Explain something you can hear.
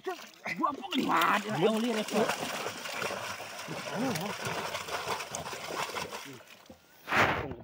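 Fish splash into water as a bucket is tipped out.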